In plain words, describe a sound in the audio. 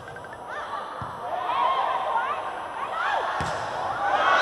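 A volleyball is struck with hard thumps.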